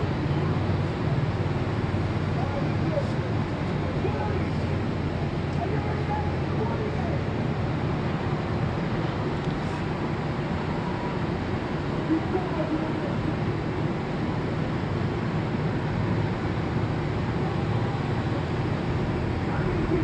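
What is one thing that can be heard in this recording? City traffic hums steadily from the streets below.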